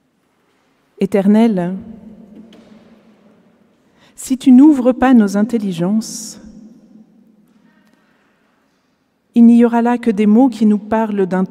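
A woman speaks calmly through a microphone in a large echoing hall, pausing between phrases.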